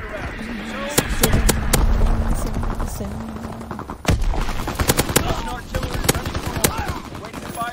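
Rapid gunfire bursts loudly at close range.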